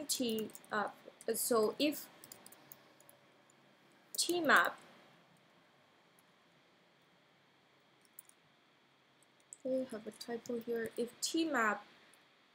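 A young woman speaks calmly and close to a microphone, pausing between phrases.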